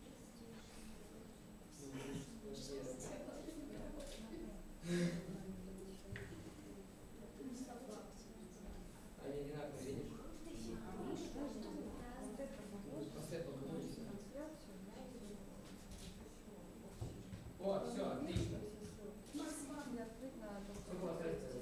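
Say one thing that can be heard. Children chatter and talk over one another.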